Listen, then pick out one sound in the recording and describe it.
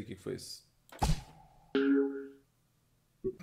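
A video game plays bright chiming sound effects.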